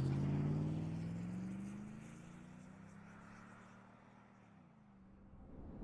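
A car engine revs and fades away as the car drives off.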